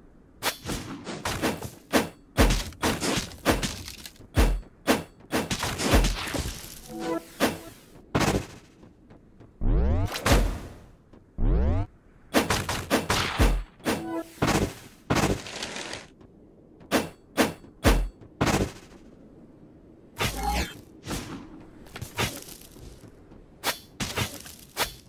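Game sword slashes and hits land in quick bursts.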